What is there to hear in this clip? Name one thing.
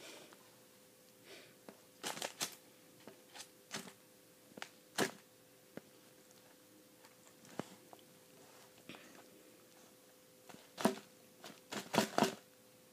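Leaves and moss rustle as a small plastic toy is moved through them.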